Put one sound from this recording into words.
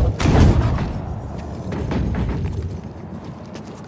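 A heavy stone block scrapes and rumbles as it slides.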